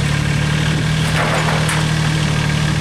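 A corrugated metal sheet clatters as it drops onto wooden pallets.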